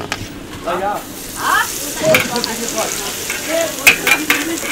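Hot oil sizzles and crackles as batter fries.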